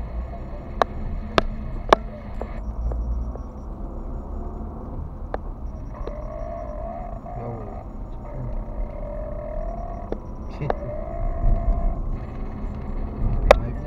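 Tyres rumble over a road.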